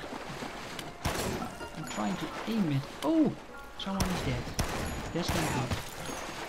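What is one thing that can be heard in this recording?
Gunshots ring out with a sharp crack.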